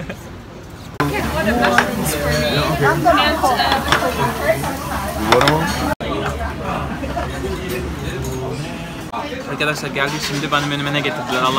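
A crowd chatters in a noisy room.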